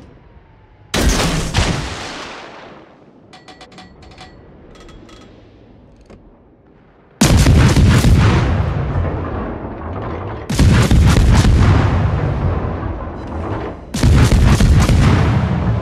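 Heavy naval guns fire in loud, booming salvos that rumble away.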